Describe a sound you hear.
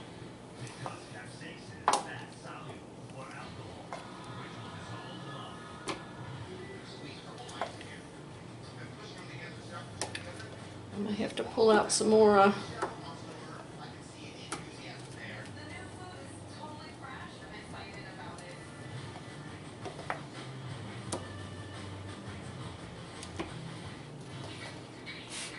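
A metal spoon clinks and scrapes against a pot.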